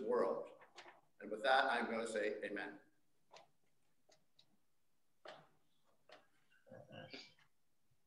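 A middle-aged man speaks calmly into a microphone in a small echoing room.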